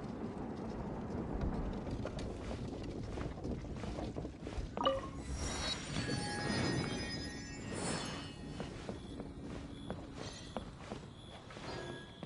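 Footsteps patter quickly across wooden boards.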